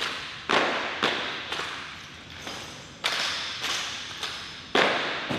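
Rifles clack and slap sharply in hands in a drill routine, echoing in a hard room.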